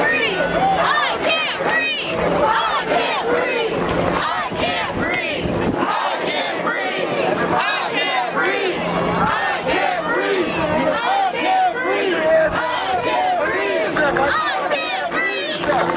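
A large crowd of men and women shouts and cheers outdoors.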